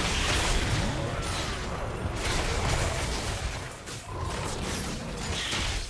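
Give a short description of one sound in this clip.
Fantasy battle sound effects of spells and strikes crackle and whoosh.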